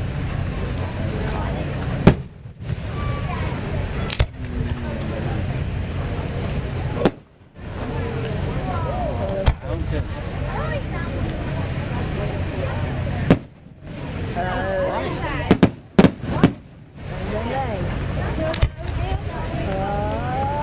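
Rockets whistle as they shoot up.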